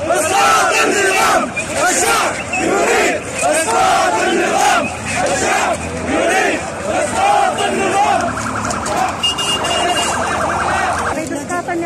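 A large crowd of men chants loudly in unison outdoors.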